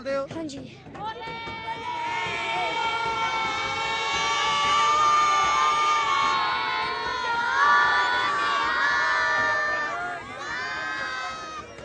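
A group of children sings together loudly.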